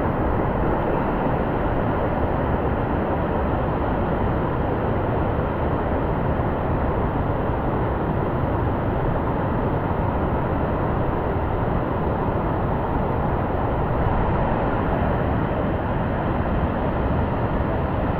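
A waterfall roars steadily close by.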